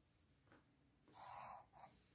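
A plastic protractor slides across paper.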